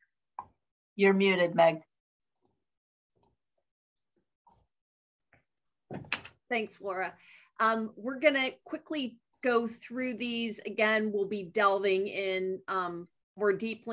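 A woman speaks calmly through an online call, as if presenting.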